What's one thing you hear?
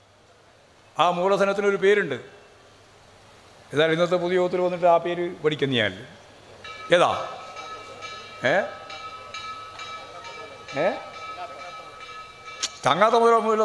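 A middle-aged man speaks with animation into a microphone, heard through loudspeakers.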